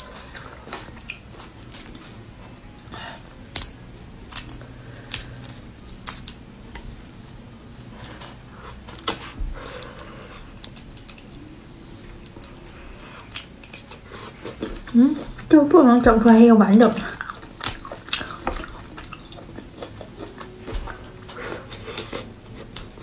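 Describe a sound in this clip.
Shells crack and crunch as a young woman peels seafood.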